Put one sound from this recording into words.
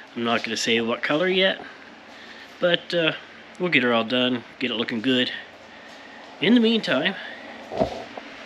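A middle-aged man talks calmly and close up.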